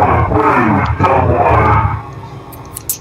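A loud, harsh screech blares from a creature in a game.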